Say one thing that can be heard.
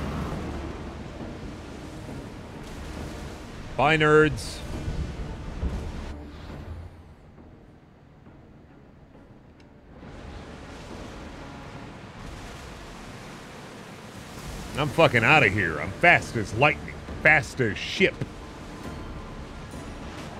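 Rough waves splash and crash against a ship's hull.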